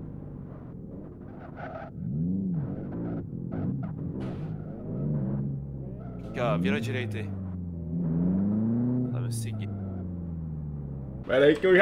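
A racing car engine revs up and down loudly.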